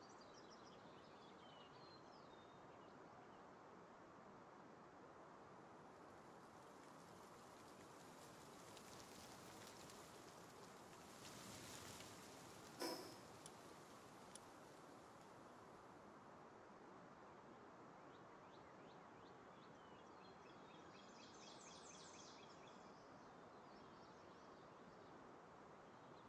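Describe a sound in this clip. Wind rushes steadily past a gliding creature.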